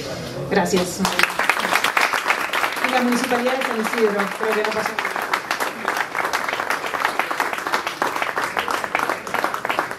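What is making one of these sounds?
A crowd applauds in a room with an echo.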